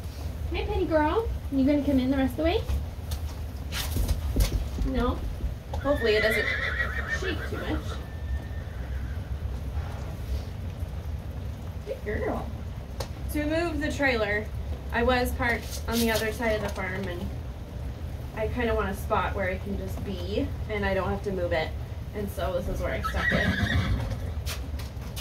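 A woman talks calmly and softly to a horse close by.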